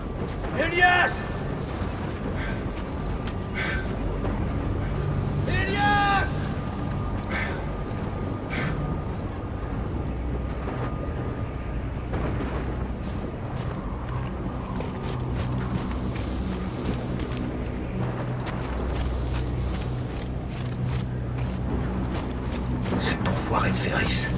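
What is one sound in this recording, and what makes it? Heavy boots crunch through snow.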